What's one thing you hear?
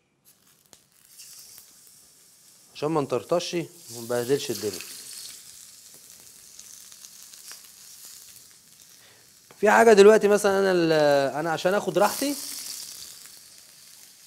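Meat sizzles in hot oil in a pan.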